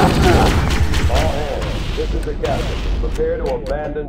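A punch lands with a heavy thud.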